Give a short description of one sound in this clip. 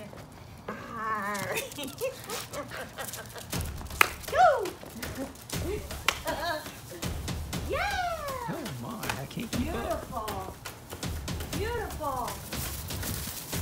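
Small dogs yip and whine excitedly.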